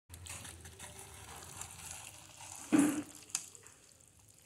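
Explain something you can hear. Metal tongs scrape and clink against a pan.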